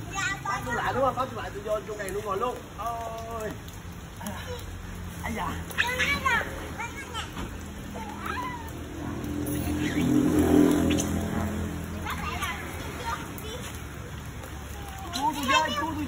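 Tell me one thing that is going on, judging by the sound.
Young children chatter and shout playfully nearby.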